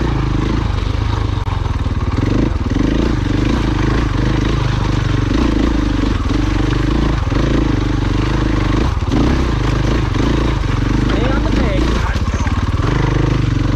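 Stones and gravel crunch and clatter under a motorbike's tyres.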